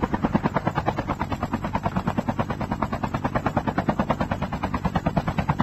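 A helicopter's rotor chops rapidly and steadily overhead.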